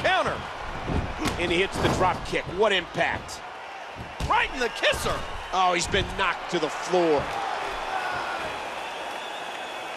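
A body slams heavily onto the floor.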